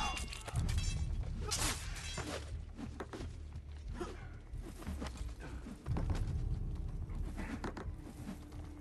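Swords clash and clang in a fight.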